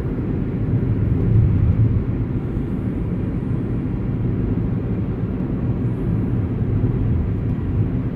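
Road noise and wind rumble low inside a moving car.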